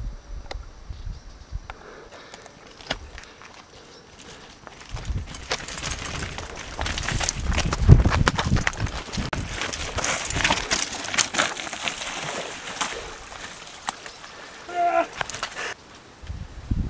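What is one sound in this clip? Bicycle tyres rattle and crunch over loose rocks.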